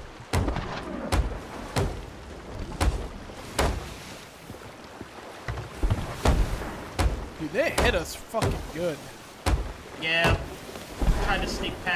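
Hammer blows knock on wood again and again.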